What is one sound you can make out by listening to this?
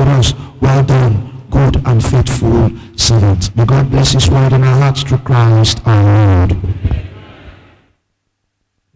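A young man speaks with animation through a microphone, his voice echoing in a large hall.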